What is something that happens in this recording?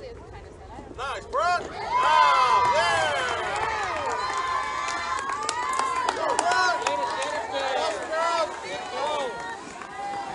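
Young girls cheer and shout excitedly outdoors.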